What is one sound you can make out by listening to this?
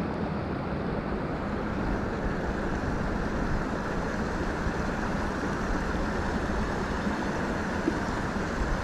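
A river rushes steadily over shallow rocks.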